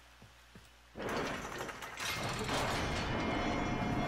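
A heavy door slides open with a loud rushing whoosh.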